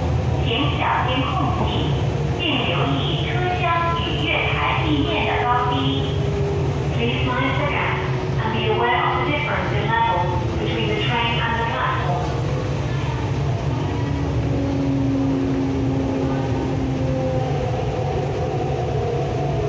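An electric commuter train rumbles along the track and slows, its motors whining lower.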